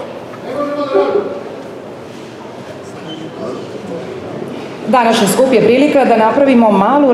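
A woman speaks into a microphone over loudspeakers in a large room.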